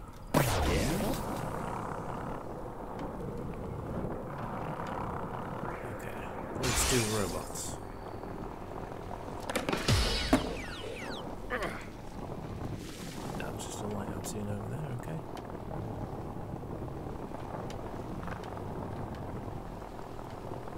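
Skateboard wheels roll and clack on concrete.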